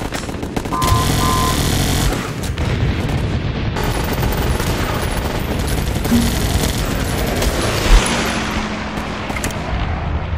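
Flames roar from a flamethrower.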